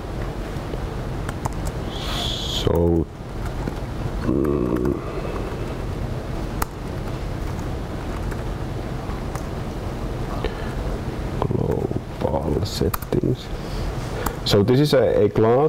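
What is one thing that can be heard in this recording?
Laptop keys click as a man types.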